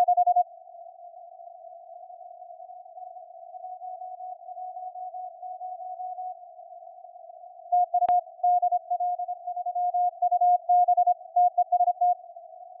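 Morse code beeps crackle through a radio receiver, over a steady hiss.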